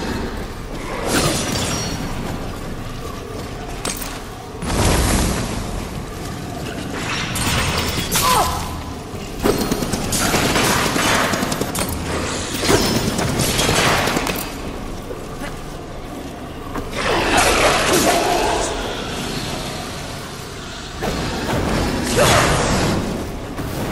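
A blade swishes through the air in sharp bursts.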